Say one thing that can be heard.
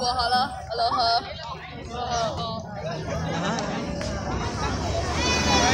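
A crowd of children and adults chatters in the background outdoors.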